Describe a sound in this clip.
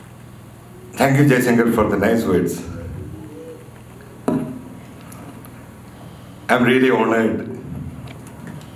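A middle-aged man speaks calmly into a microphone over loudspeakers.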